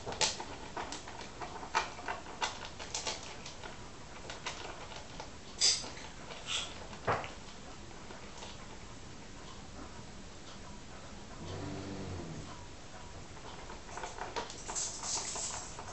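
A cat eats noisily from a bowl, smacking and crunching up close.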